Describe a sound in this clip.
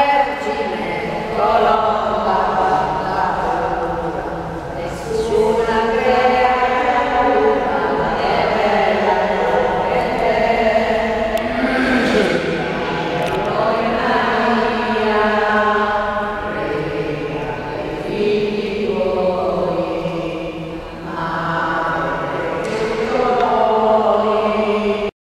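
An elderly man sings slowly in a large, echoing hall.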